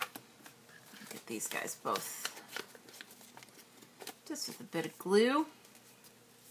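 Paper crinkles and rustles as hands handle it.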